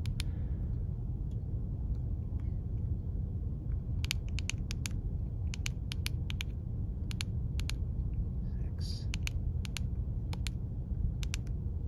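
A handheld radio beeps in short, sharp tones as its buttons are pressed.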